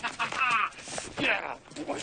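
A young boy laughs happily.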